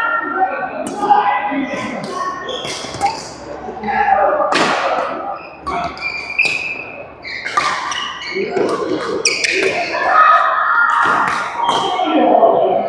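A badminton racket strikes a shuttlecock with sharp pops in an echoing hall.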